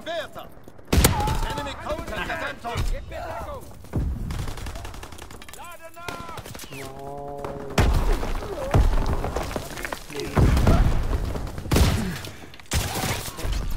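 A rifle fires loud, sharp shots now and then.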